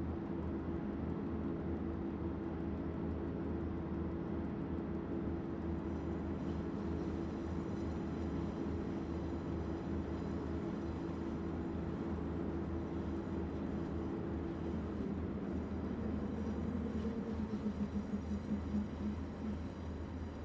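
Wheels rumble along the rails.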